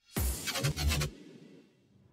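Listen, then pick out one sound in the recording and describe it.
A burst of glitchy digital noise crackles.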